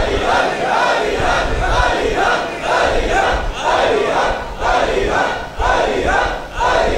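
A man speaks with animation into microphones, heard through a loudspeaker in an echoing hall.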